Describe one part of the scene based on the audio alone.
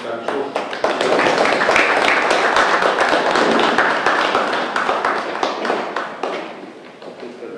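A group of people applaud in a room.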